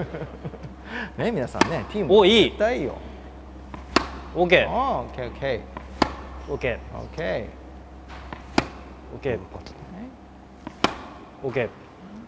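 A tennis ball pops sharply off a racket.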